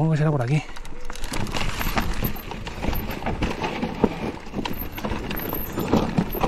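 A mountain bike rattles over rough ground.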